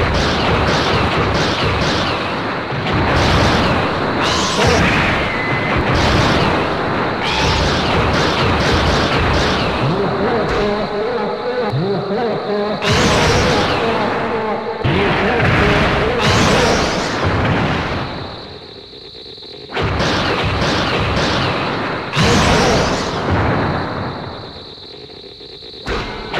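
Heavy blows and crashes land in a video game monster fight.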